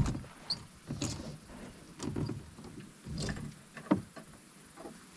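A plastic boat hull scrapes and bumps over sandy ground.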